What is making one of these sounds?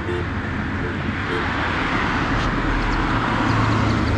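A minibus drives by close up.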